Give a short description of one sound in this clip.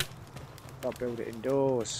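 A campfire crackles.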